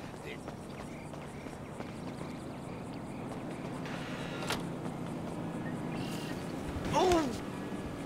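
Footsteps run quickly over concrete.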